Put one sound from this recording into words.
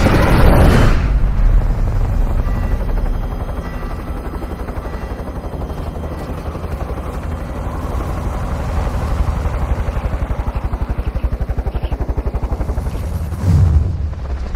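A helicopter engine drones steadily from inside the cabin.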